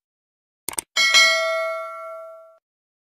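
A small bell chimes and rings out.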